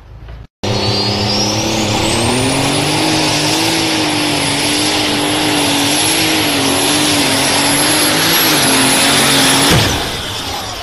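A high turbo whine rises and holds over a tractor engine.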